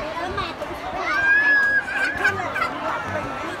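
A loud burst of children's voices cheers.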